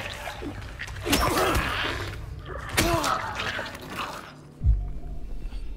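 A metal pipe strikes flesh with heavy thuds.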